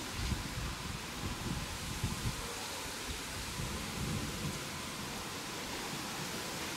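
Wind blows steadily outdoors, with low gusts buffeting.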